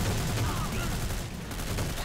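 A rifle fires a loud shot.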